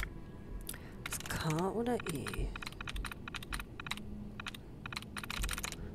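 A computer terminal clicks and ticks rapidly.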